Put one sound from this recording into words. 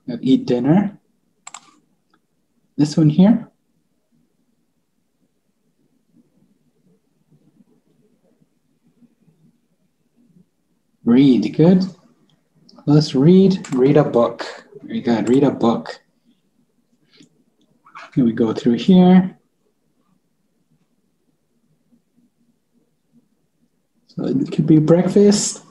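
A man speaks calmly and clearly into a microphone over an online call, in short phrases with pauses.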